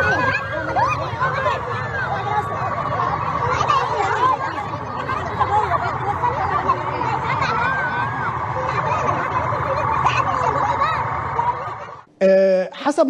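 A crowd of people shouts and clamours outdoors.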